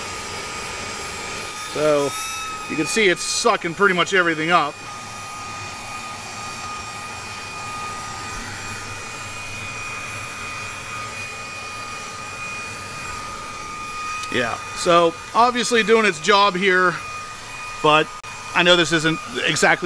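A handheld vacuum cleaner hums with a steady high whine.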